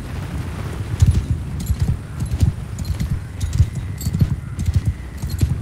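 Weapons clash and clatter in a battle.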